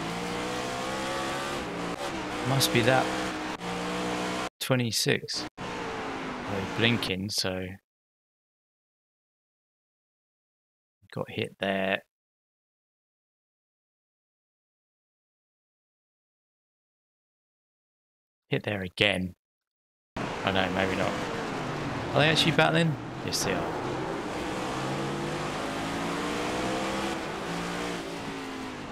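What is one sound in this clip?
A race car engine roars at high revs, rising and falling in pitch as it shifts gears.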